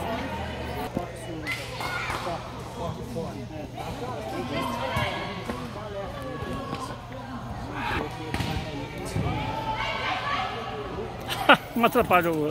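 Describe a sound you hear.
A ball is kicked with a dull thud.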